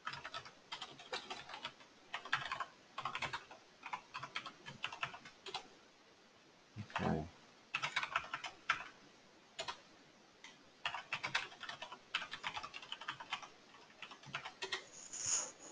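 Keyboard keys click in quick bursts of typing.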